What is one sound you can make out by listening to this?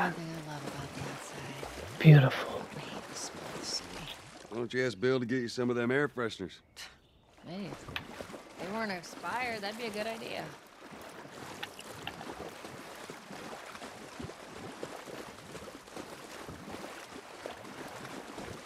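Footsteps slosh and splash through shallow water.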